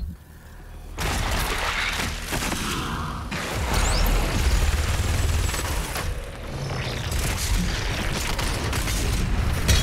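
Heavy guns fire in rapid, loud blasts.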